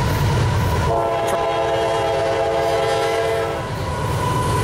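A train horn blares a long, loud chord.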